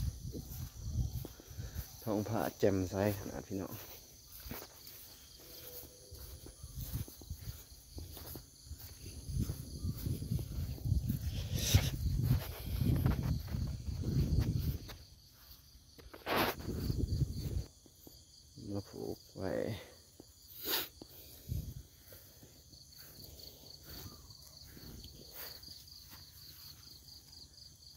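Wind blows and rumbles across open ground outdoors.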